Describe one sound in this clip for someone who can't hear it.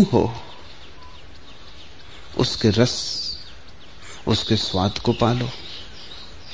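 A man speaks slowly and calmly in short phrases with pauses.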